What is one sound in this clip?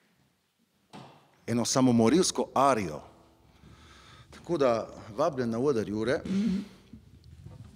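A man sings with feeling into a nearby microphone in a room with a slight echo.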